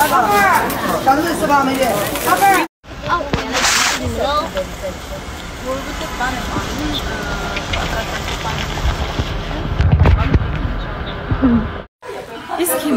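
A young woman speaks cheerfully close to the microphone.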